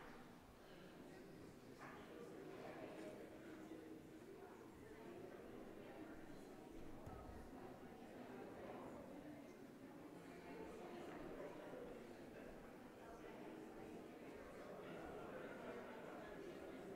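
Elderly men and women chat quietly nearby in a large echoing hall.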